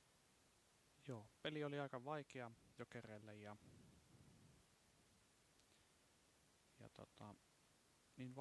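A young man speaks calmly into a nearby microphone, in short bursts.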